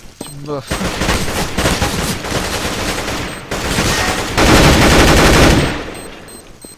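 Rapid gunfire rattles loudly and keeps going.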